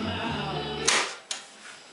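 A button clicks on a radio.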